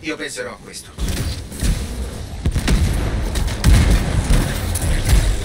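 Gunshots fire in rapid bursts with heavy booms.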